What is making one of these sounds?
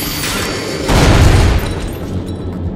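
A metal lock breaks off with a clang.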